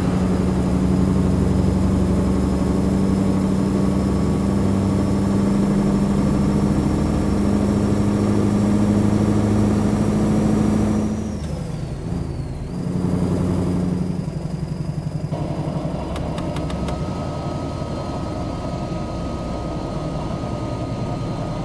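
A truck engine hums steadily from inside the cab and drops in pitch as the truck slows.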